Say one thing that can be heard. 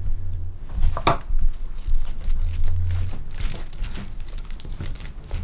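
Hands knead and slap soft dough.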